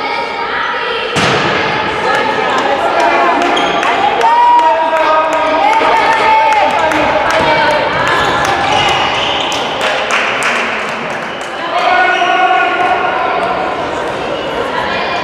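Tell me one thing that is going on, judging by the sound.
Young women shout to each other across the court.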